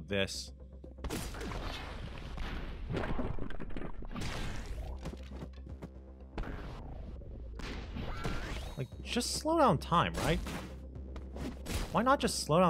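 A blade swooshes and slashes in quick strikes.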